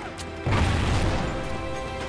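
A rifle fires a rapid burst of gunshots.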